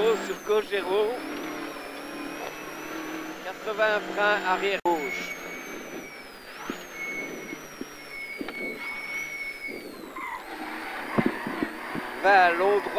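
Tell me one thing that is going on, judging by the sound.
A rally car engine roars and revs up and down.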